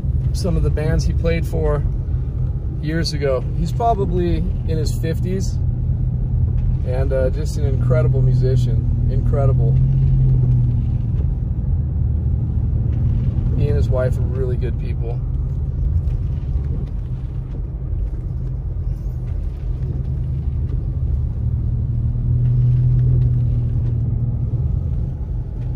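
Tyres crunch and rumble over a snowy road.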